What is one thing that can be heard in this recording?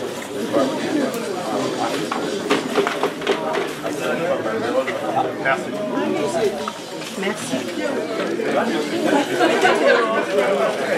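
A crowd of men and women chatter loudly in an echoing room.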